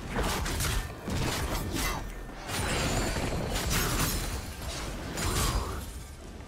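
Magic spell effects whoosh and crackle in bursts.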